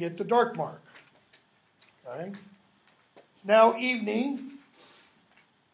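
An older man speaks calmly and close by.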